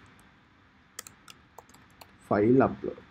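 Keys click on a computer keyboard.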